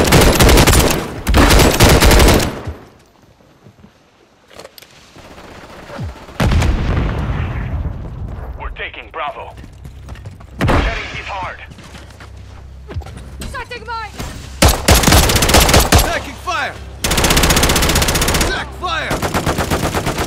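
Gunfire rattles in loud, rapid bursts.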